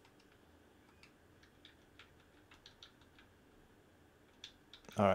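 Buttons on a handheld game console click softly.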